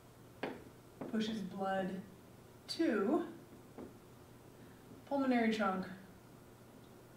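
A woman speaks calmly, as if teaching, in a room with some echo.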